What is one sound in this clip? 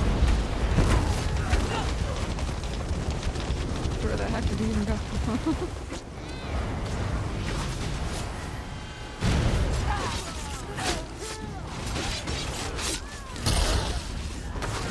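Fiery spells burst and crackle in a fight.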